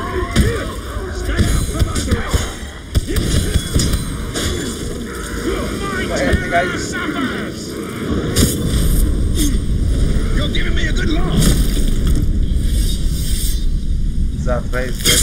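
Blades clash and strike in a fast melee fight.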